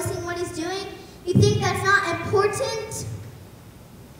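A young woman speaks loudly and with feeling, heard from a distance in a large hall.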